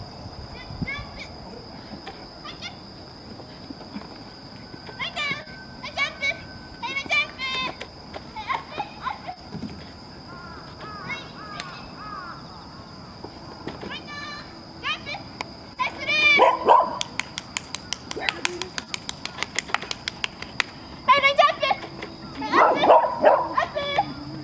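A young girl calls out excited commands to a dog, outdoors.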